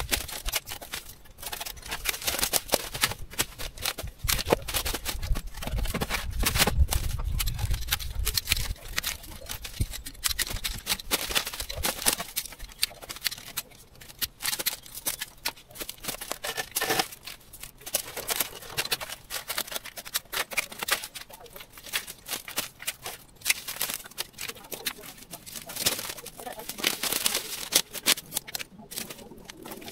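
Leafy branches rustle and crackle as they are dragged and pulled by hand.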